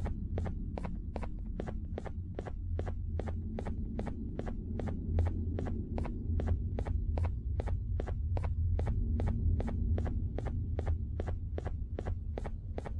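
Quick, even footsteps tap on a hard floor.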